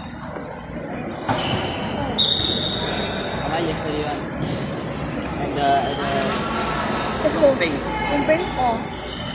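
Children and young people chatter and shout in a large echoing hall.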